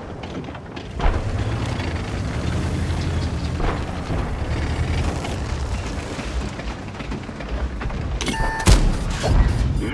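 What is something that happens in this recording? A tank engine rumbles low and steady as the tank drives.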